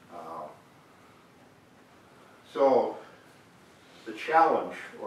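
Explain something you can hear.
An elderly man speaks slowly in short bursts, close by in a room.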